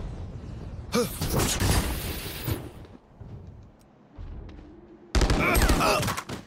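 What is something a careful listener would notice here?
A rifle fires several more bursts of shots.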